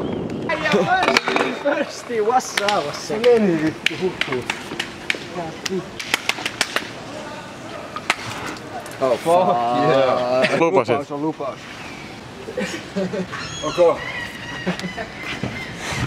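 Young men talk and laugh close by, outdoors.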